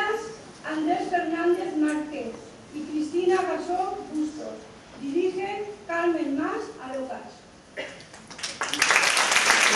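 A woman sings on stage in a large hall.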